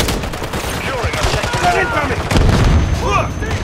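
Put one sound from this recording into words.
A belt-fed machine gun fires automatic bursts.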